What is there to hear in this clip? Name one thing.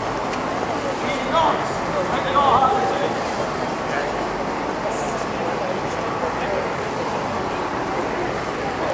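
Footsteps tap on paving stones as people walk by.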